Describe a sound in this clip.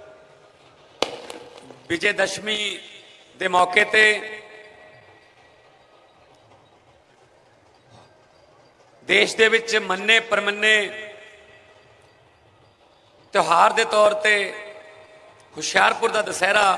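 A man speaks forcefully into a microphone through loudspeakers, in bursts with pauses between.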